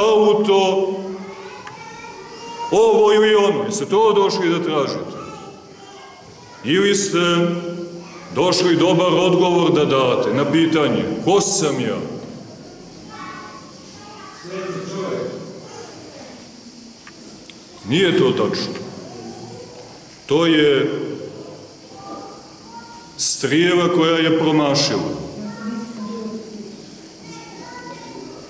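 A man preaches loudly and with animation in a large echoing hall.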